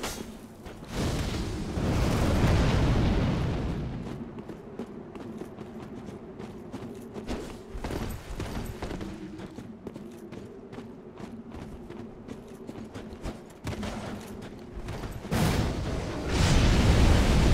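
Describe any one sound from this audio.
A fire spell bursts with a roar.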